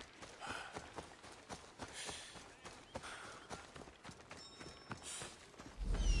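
Footsteps crunch through grass and brush.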